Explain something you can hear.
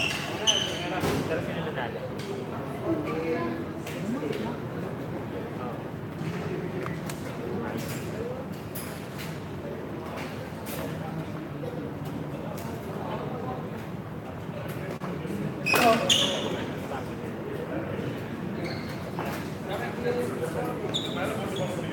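Badminton rackets smack a shuttlecock back and forth.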